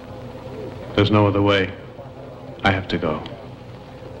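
A man speaks tensely.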